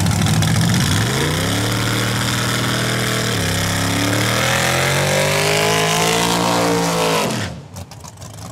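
A race car engine revs up and down sharply.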